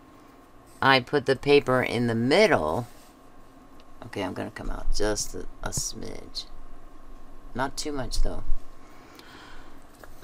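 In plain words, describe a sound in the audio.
Paper strips rustle softly as they are handled.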